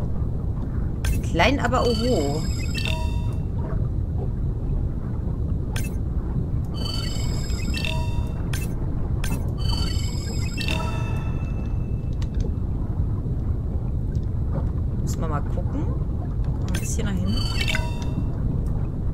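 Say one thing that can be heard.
Electronic scanner tones chime in short bursts.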